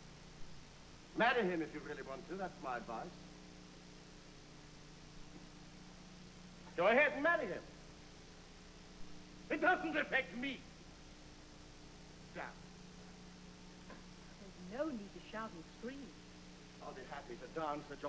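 A young man answers in a lively voice.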